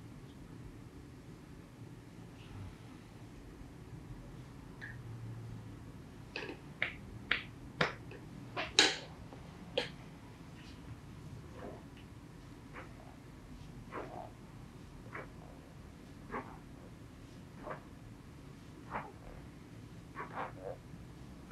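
Hands rub skin during a massage.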